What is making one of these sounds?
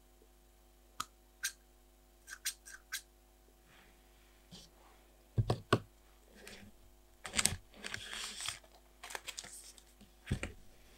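Scissors snip close by.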